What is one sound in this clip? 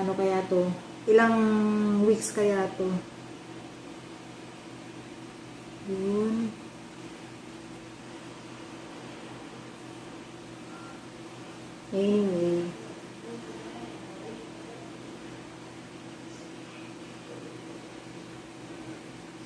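Gloved hands rub and squeeze hair.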